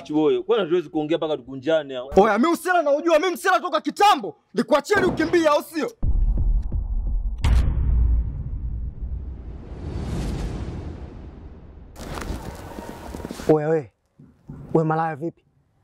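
A young man speaks loudly and angrily up close.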